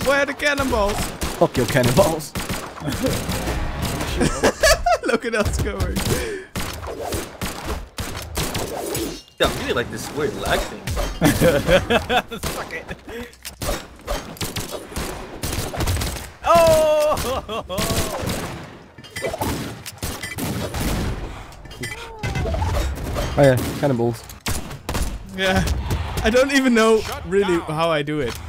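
Punchy hits and swishing weapon blows sound in quick succession in a fighting game.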